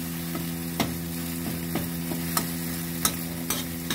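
Thick paste sizzles in hot oil.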